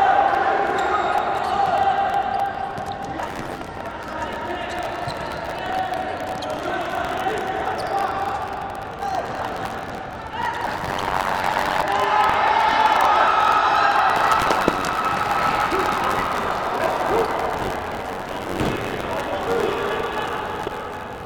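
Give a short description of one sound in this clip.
A crowd cheers and chants in a large echoing hall.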